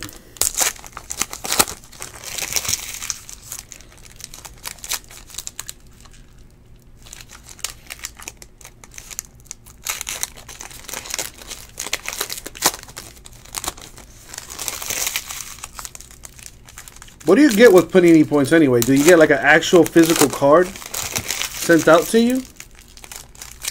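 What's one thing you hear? Foil wrappers crinkle and rustle close by.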